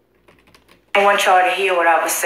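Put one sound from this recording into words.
A woman speaks up close.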